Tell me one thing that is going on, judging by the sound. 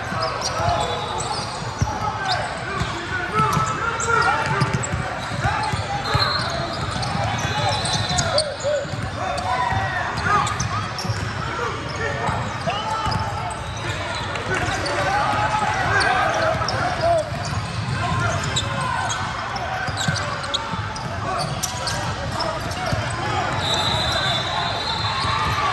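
A crowd of voices chatters and echoes through a large hall.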